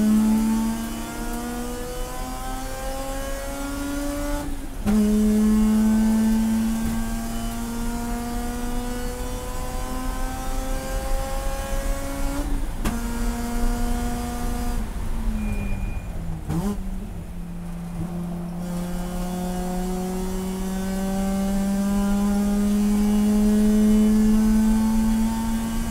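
A race car engine roars loudly from inside the car, climbing steadily in pitch and dropping sharply at each gear change.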